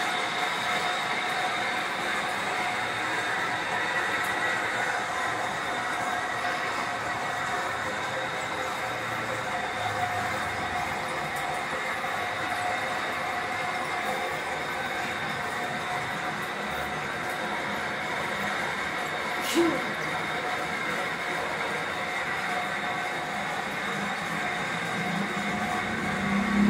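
A metal lathe runs, turning a steel shaft.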